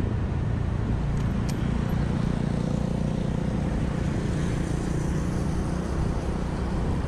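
A motorbike passes close by.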